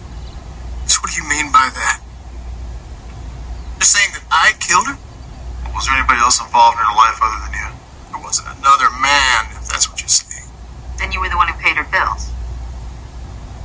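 A young man talks with animation, heard through a television speaker.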